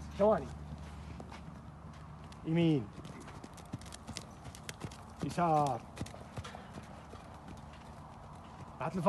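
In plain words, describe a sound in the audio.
Hooves thud softly on sand.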